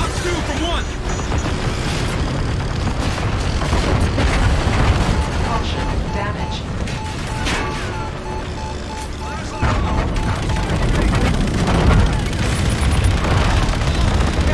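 Explosions rumble deep and low.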